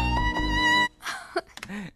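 Music plays from a stereo.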